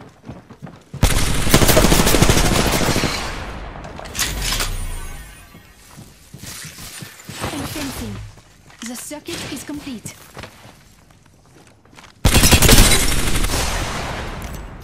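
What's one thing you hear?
A gun fires in loud, rapid bursts.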